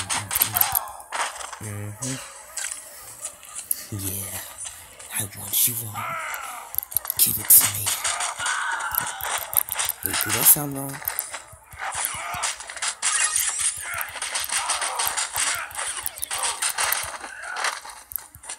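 Punches and kicks land with quick, sharp thuds.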